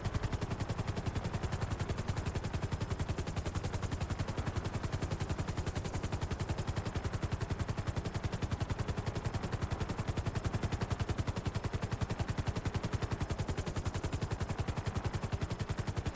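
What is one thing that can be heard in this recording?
A helicopter's rotor blades chop rapidly and steadily as it descends and lands.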